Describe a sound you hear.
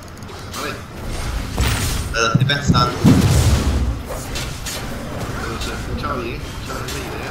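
Blows and magic blasts strike a large creature in quick bursts.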